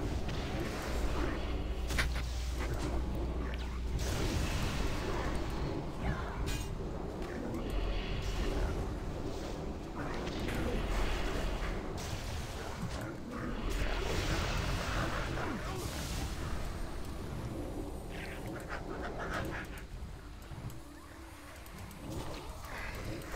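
Spell effects and weapon blows crash and whoosh in a game fight.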